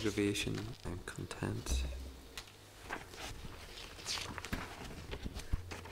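Paper sheets rustle as they are turned.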